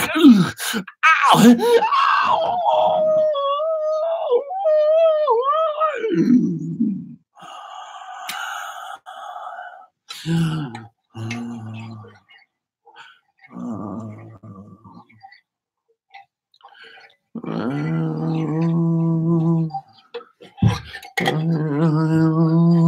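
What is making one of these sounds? A man sings loudly and with feeling into a microphone, close by.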